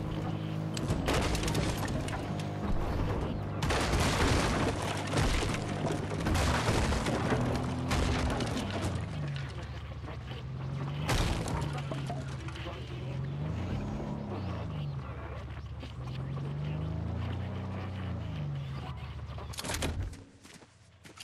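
A vehicle engine hums and revs as it drives over rough ground.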